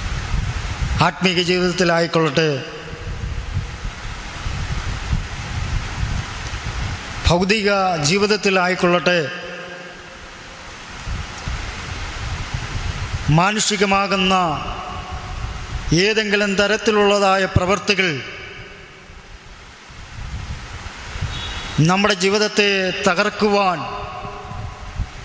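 A man sings slowly into a microphone in short phrases with pauses.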